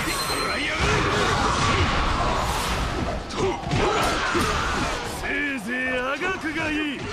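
Swords clash and slash amid a loud, chaotic battle.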